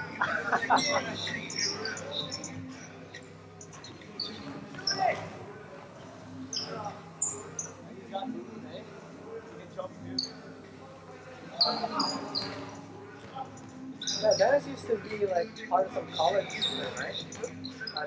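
Young men shout and call out to each other across the echoing gym.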